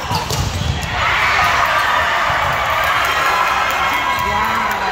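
Young girls shout and call out nearby.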